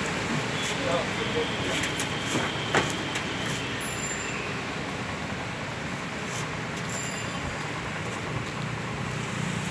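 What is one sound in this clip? A motorcycle is pushed up a metal ramp and bumps onto a pickup bed.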